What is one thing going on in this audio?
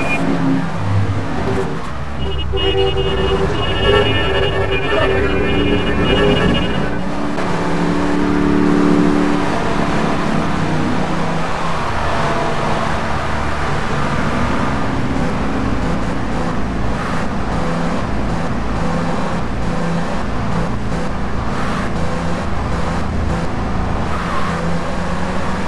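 A car engine roars steadily as a car speeds along.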